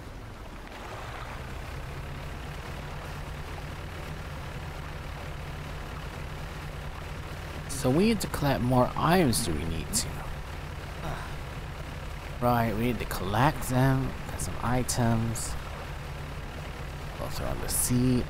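A boat's engine hums steadily.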